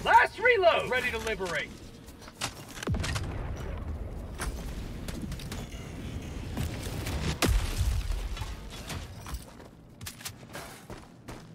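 Heavy footsteps crunch on rough ground.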